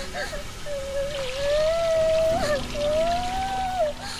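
Water pours from a jug and splashes onto someone's head.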